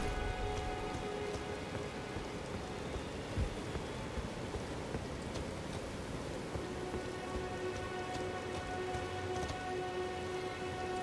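Footsteps crunch through grass and over stone.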